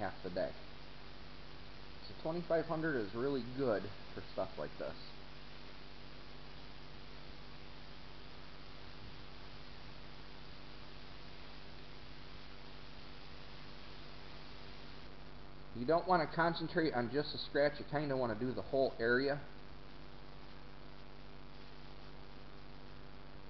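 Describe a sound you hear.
Sandpaper scrapes softly back and forth across a smooth surface.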